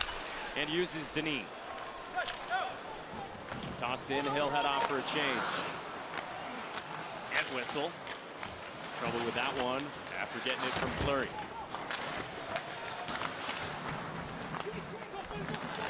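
Ice skates scrape and hiss across an ice rink.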